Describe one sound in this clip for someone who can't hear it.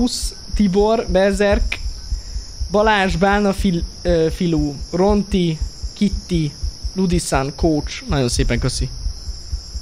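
A young man speaks close to a microphone, with animation.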